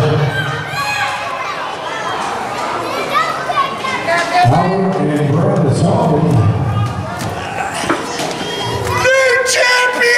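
A crowd shouts and chatters in a large echoing hall.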